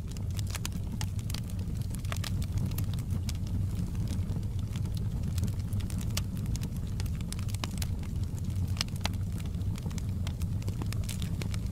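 A fire roars with a low, steady rumble.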